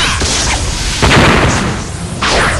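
An energy blast explodes with a loud boom.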